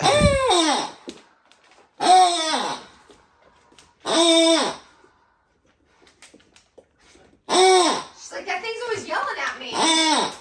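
A rubber squeaky toy squeaks loudly in long, falling squeals, again and again.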